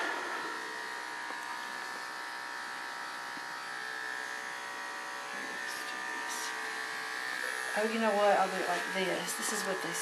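Electric clippers hum steadily close by.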